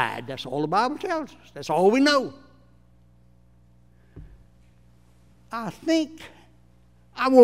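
An elderly man preaches with animation through a microphone.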